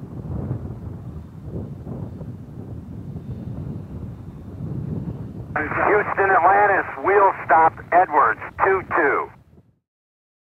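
A large spacecraft rolls down a runway with a low, steady rumble.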